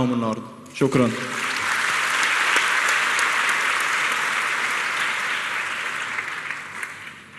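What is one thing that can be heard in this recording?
A large audience applauds.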